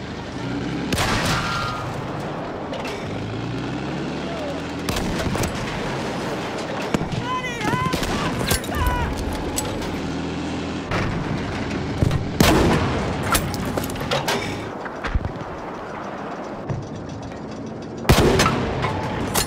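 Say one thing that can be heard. A tank cannon fires with loud booming blasts.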